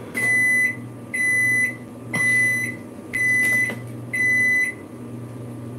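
A small device beeps in short, even bursts.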